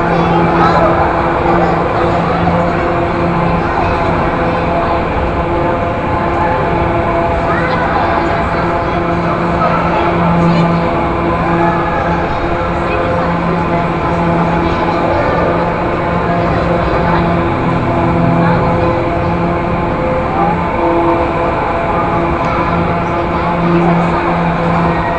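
Carousel music plays steadily throughout.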